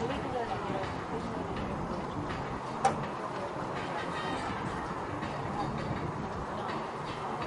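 A horse's hooves thud softly on grass in the distance.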